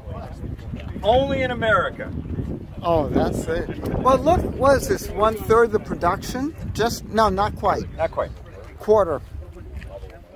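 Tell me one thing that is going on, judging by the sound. An elderly man speaks close to a microphone.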